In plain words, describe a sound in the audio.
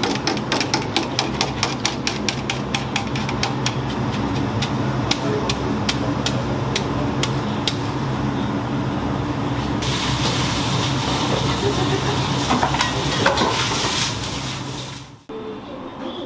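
Water boils vigorously in a large pot.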